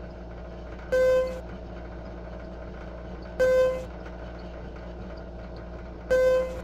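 An elevator chime dings at each floor.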